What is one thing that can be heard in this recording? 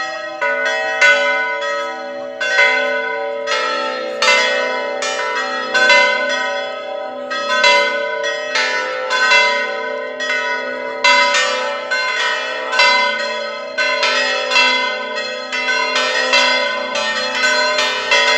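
A church bell rings out repeatedly, each stroke ringing on and overlapping the next.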